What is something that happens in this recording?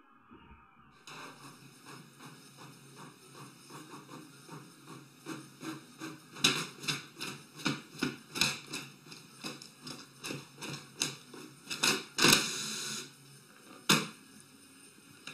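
A printer hums and ticks steadily while printing.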